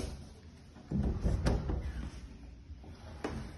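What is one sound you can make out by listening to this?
A wooden drawer slides open beneath a bed.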